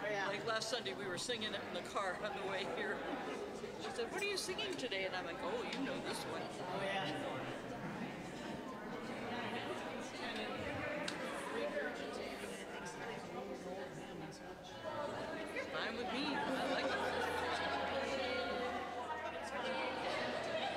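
A crowd of people chatters and mingles close by.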